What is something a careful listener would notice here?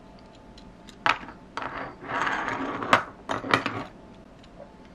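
A plastic toy scrapes and knocks on a hard tabletop.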